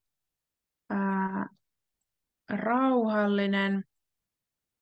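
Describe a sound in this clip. A young woman speaks clearly through a microphone on an online call.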